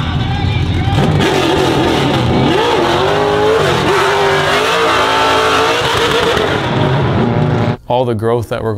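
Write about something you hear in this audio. Tyres squeal as a car slides.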